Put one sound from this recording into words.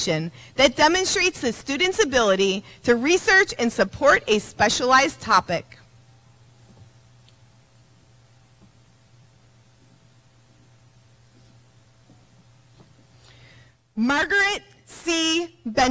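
A woman speaks calmly through a loudspeaker in a large echoing hall.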